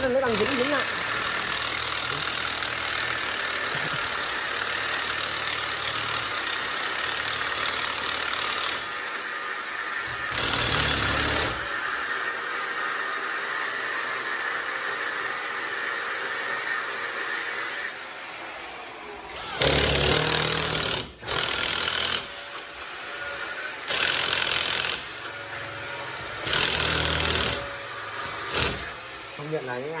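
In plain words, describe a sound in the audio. A cordless drill whirs and bores into a wall in bursts.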